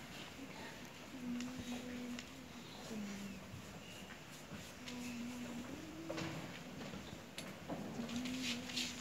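A large choir sings slow, long held notes in a big echoing hall.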